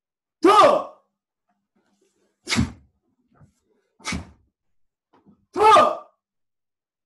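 A man shouts sharply several times.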